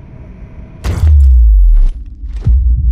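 A portal whooshes with a deep rumble.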